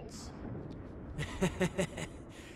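A man speaks with a gruff voice.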